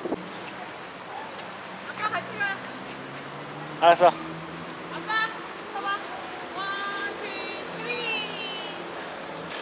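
A young child talks in high, excited bursts close by.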